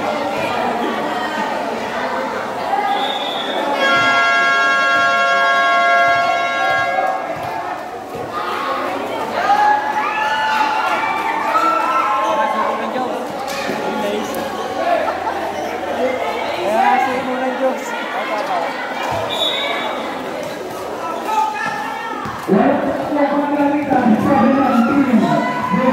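A crowd of young people chatters and shouts.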